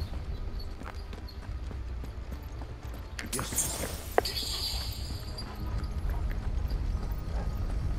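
Footsteps walk on a stone floor.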